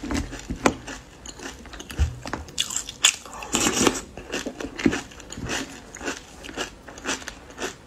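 A spoon scrapes against a bowl.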